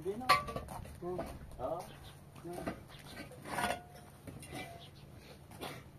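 Concrete blocks knock against each other.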